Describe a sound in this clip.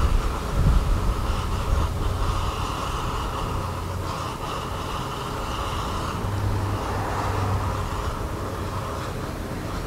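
Molten metal pours with a faint hiss.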